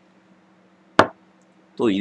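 A glass knocks down onto a table.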